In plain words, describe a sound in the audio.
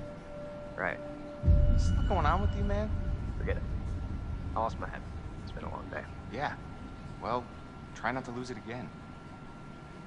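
A second young man speaks calmly.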